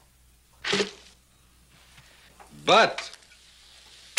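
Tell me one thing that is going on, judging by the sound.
Champagne pours and fizzes into a glass.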